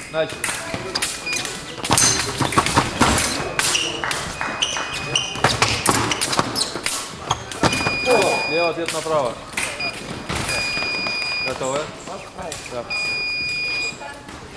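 Fencers' shoes stamp and squeak on the floor.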